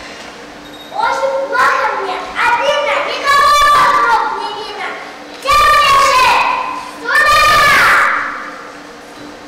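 A child speaks loudly and with animation in a large echoing hall.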